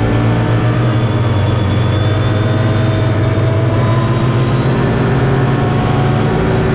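A small engine roars loudly and steadily, close by.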